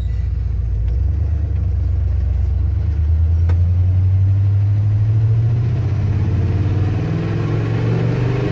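A truck engine revs up and rises in pitch as the truck drives off.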